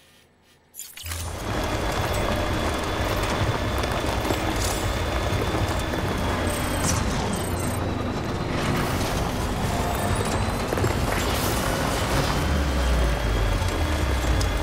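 Tyres crunch over gravel and stones.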